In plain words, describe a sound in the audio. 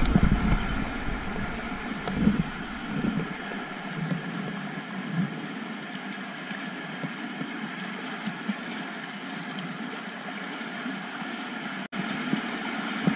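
A kayak paddle splashes in the water.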